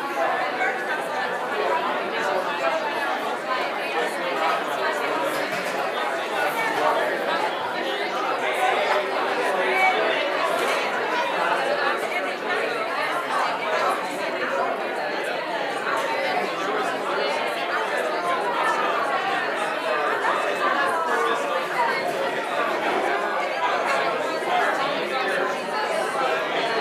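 A crowd of men and women chat all at once in a room with some echo.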